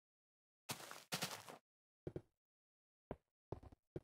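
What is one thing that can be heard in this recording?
Lava pops and crackles.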